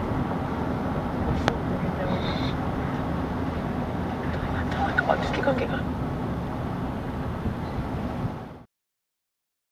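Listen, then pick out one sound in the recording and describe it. A car engine and tyres rumble steadily while driving along a road.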